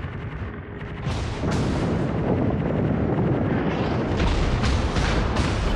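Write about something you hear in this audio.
Guns fire in rapid bursts of loud booms.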